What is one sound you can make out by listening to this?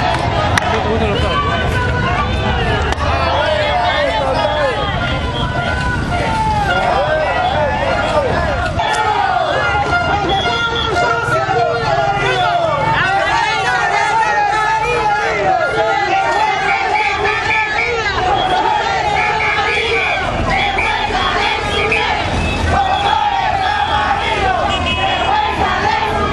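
A large crowd of men and women chants and talks loudly outdoors.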